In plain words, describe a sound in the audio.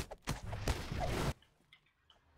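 A fiery blast bursts and roars in a game.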